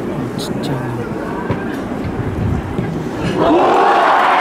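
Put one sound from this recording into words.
A crowd murmurs and chatters in a large open stadium.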